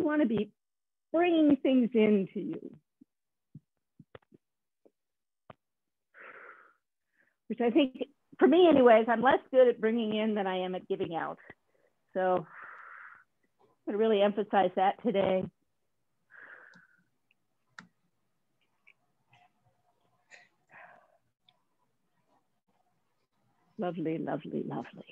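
A woman speaks calmly over an online call, giving instructions in bursts.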